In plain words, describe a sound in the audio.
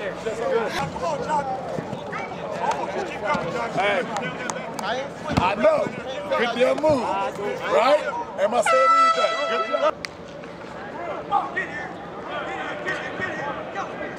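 Men shout and call out in a large echoing space.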